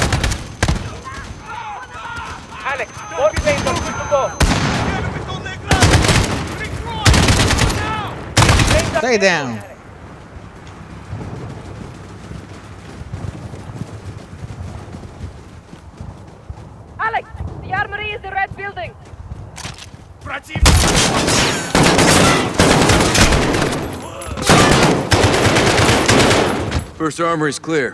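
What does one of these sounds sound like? Rapid gunfire bursts loudly, close by.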